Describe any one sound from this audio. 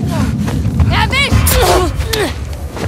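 A man gasps and grunts in a struggle up close.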